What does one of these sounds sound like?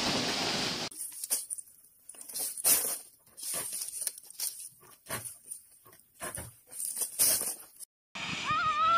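Leafy stems rustle and snap as a woman picks them.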